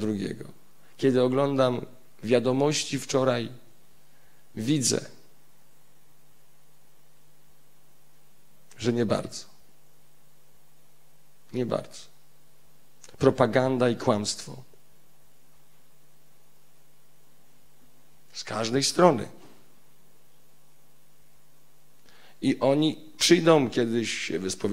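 A man speaks expressively into a microphone in short bursts, with long pauses.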